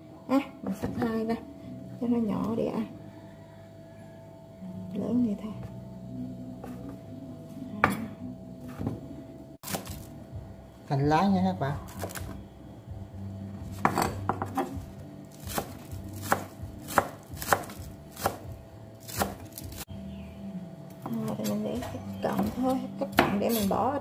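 A knife chops rapidly on a wooden cutting board.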